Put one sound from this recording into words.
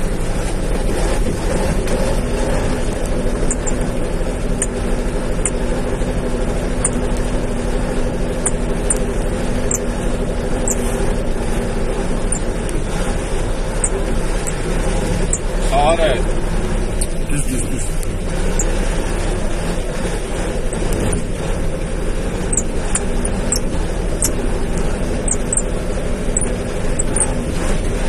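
A vehicle's body rattles and bumps over uneven ground.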